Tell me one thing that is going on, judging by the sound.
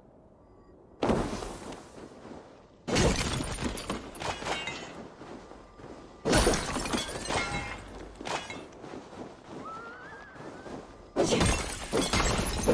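Footsteps crunch quickly through deep snow.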